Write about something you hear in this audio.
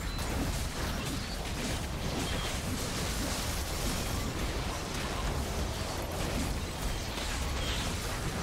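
Battle sound effects clash and burst.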